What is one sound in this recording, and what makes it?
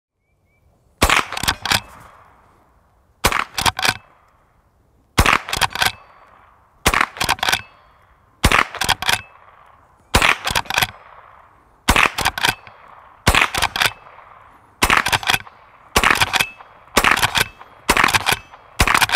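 A rifle fires loud, sharp shots again and again, each echoing outdoors.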